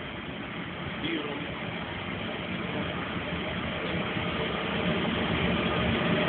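A train approaches along the tracks, its rumble slowly growing louder.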